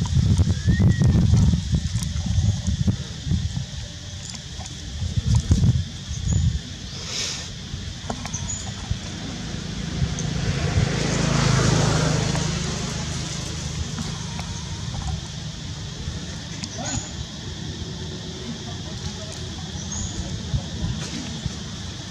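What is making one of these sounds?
Dry leaves rustle under a baby monkey crawling.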